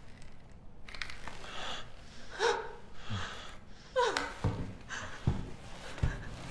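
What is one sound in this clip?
A young man speaks quietly and tensely.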